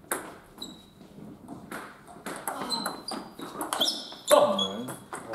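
A table tennis ball clicks back and forth off paddles and the table.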